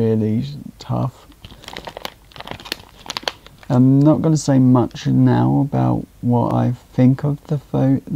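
A plastic snack bag rustles and crinkles in a hand.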